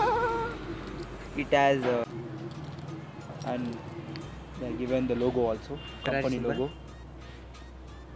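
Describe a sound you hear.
Keys jingle on a key ring.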